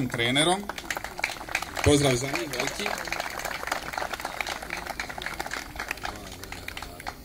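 A crowd applauds outdoors with scattered clapping.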